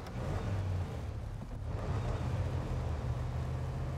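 Tyres splash through mud and puddles.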